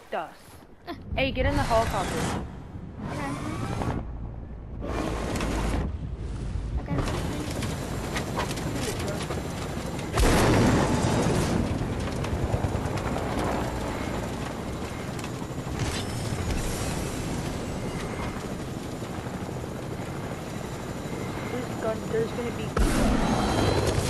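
A helicopter's engine and rotor roar steadily.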